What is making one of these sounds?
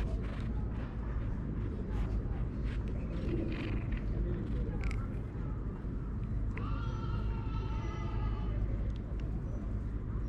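A rubber grooming brush strokes through a cat's fur.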